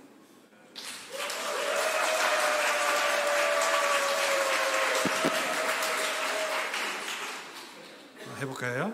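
An audience claps and applauds.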